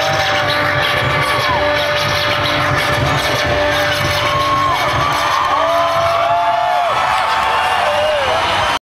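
A rock band plays loudly on a stage outdoors.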